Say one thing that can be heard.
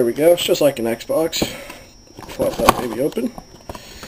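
A cardboard box lid is lifted open with a soft scrape.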